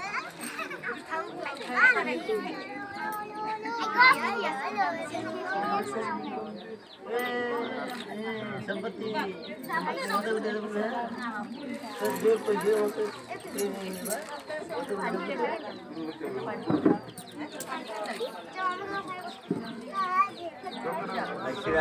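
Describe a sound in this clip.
A crowd of women and children chatter nearby.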